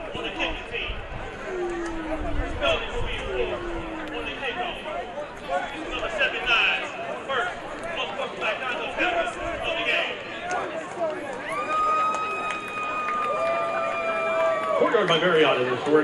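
A large crowd murmurs and cheers outdoors in the distance.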